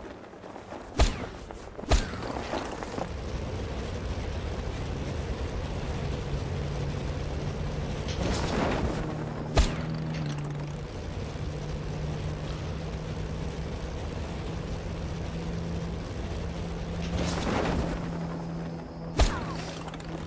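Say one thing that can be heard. A parachute snaps open with a sharp thump.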